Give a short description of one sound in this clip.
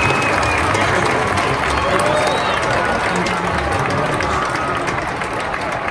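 A large crowd cheers and whistles in a large echoing arena.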